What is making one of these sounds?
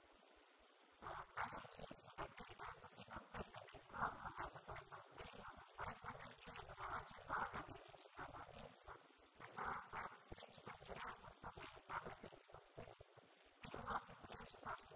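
A young woman speaks calmly into a microphone, heard through a loudspeaker in an echoing room.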